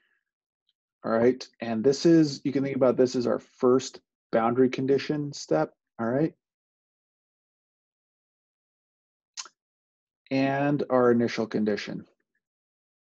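A man speaks calmly into a microphone, explaining.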